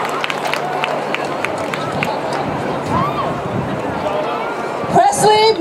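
A crowd murmurs and cheers in the open air.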